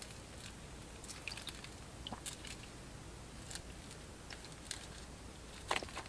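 Hands pull cooked fish off a wooden skewer.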